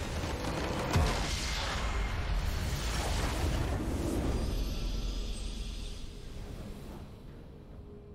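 A game structure explodes and crumbles with a loud rumble.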